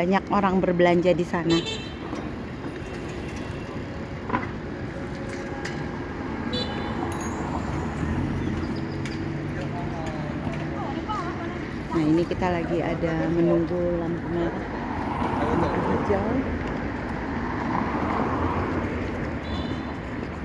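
Traffic hums steadily along a busy city street outdoors.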